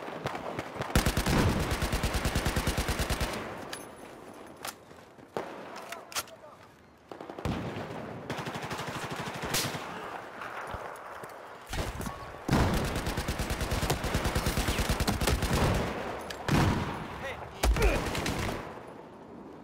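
A rifle fires rapid automatic bursts close by.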